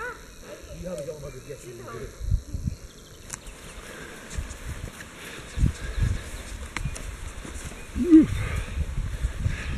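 Runners' footsteps thud on soft ground nearby.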